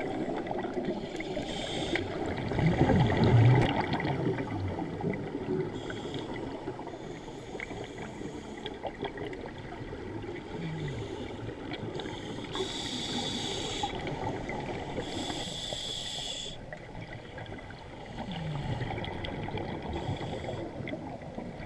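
Scuba breaths hiss through a regulator and bubbles rumble underwater.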